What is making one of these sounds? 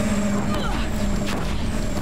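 Fire bursts with a crackling roar.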